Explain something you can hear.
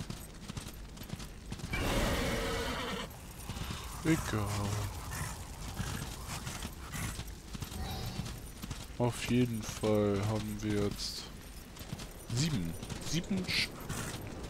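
Hooves pound steadily as a horse gallops over sand.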